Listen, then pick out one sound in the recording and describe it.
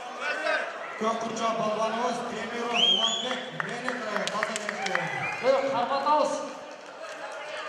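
A man speaks loudly through a microphone over loudspeakers.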